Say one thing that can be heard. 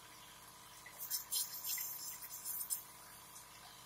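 A man breathes in through a mouthpiece with a hiss.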